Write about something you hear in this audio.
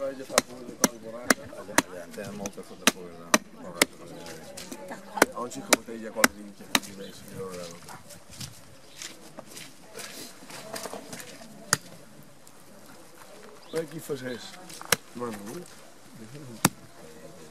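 A man talks calmly nearby, outdoors.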